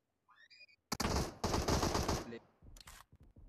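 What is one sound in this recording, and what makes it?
Rapid gunshots fire in a short burst.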